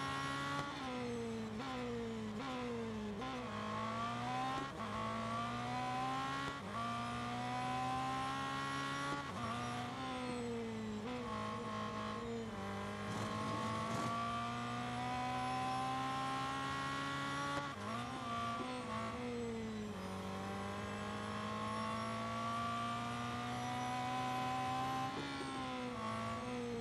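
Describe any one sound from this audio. A racing car engine roars, rising in pitch as it speeds up and dropping sharply at each gear change.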